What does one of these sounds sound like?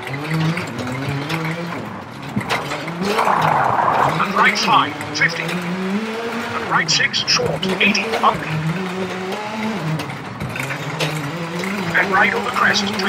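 Tyres crunch and skid over gravel.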